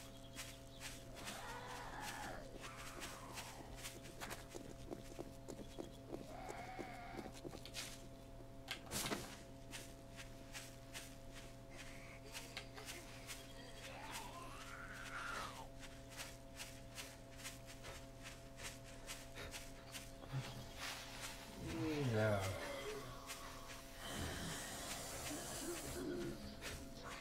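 Footsteps crunch through grass at a steady walking pace.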